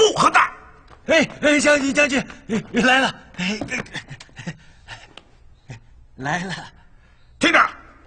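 An elderly man speaks urgently and breathlessly.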